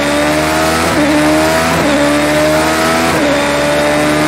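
Gear changes make the engine note jump sharply.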